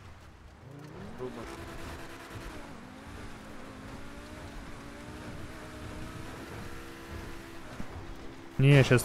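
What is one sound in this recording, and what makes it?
A car engine hums and revs, rising and falling in pitch.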